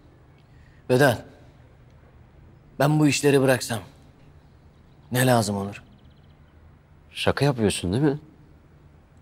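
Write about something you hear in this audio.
A second man answers calmly close by.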